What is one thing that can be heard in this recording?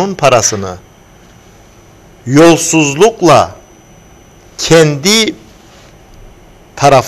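A man speaks with animation through a close microphone, in short bursts with pauses.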